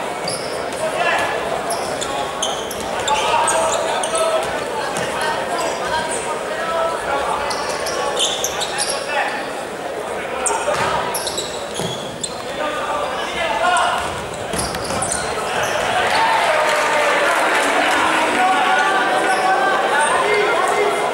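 Sports shoes squeak sharply on an indoor court.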